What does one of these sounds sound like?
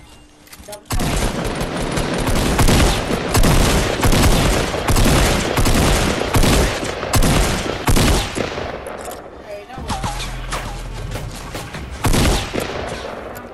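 Guns fire in rapid, loud bursts of shots.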